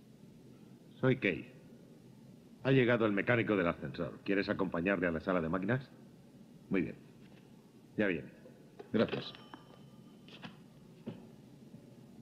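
An older man speaks into a telephone.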